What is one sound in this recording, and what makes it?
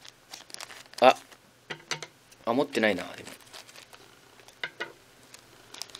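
A plastic wrapper crinkles as it is handled.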